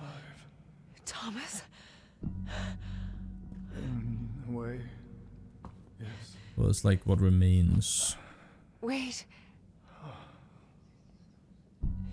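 A young woman speaks quietly.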